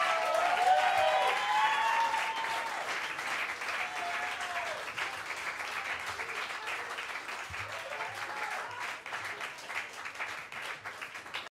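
A crowd applauds loudly in a room.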